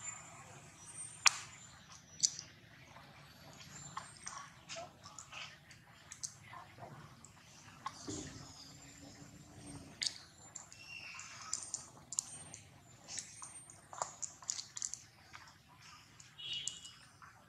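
A monkey chews and crunches food close by.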